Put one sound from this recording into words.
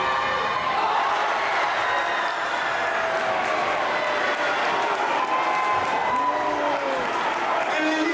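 A large crowd cheers and shouts loudly in an echoing gym.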